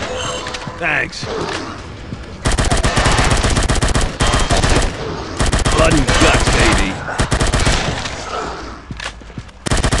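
A rifle clicks as a magazine is reloaded.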